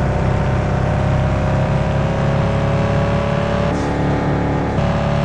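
A sports car engine roars at high speed.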